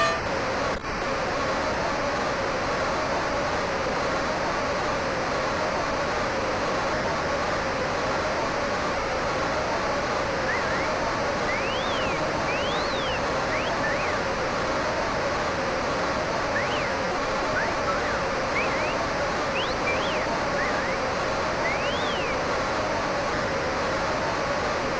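A large crowd roars steadily in an echoing arena.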